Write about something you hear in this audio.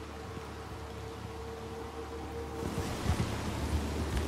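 A horse's hooves thud on soft ground as it gallops.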